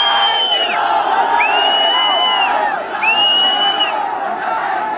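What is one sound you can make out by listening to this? Whistles shrill from the crowd.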